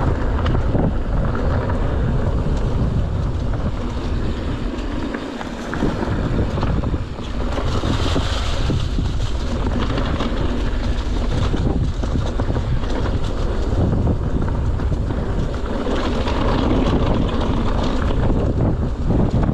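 Wind rushes loudly past a moving bike.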